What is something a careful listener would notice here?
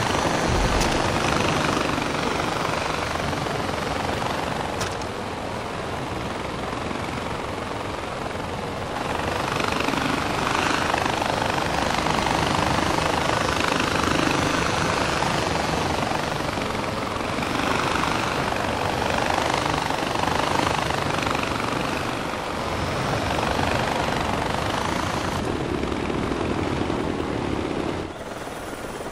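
A pulley whirs steadily along a cable.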